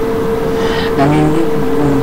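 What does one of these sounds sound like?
A young man speaks briefly and close by.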